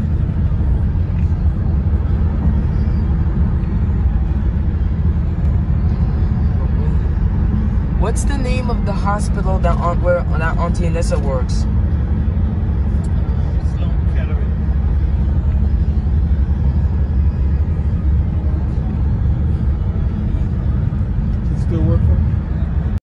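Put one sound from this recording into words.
A vehicle rumbles low and steady.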